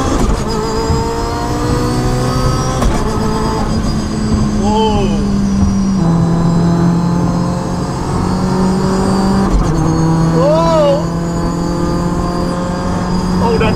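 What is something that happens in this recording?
Tyres and wind roar steadily on a fast road.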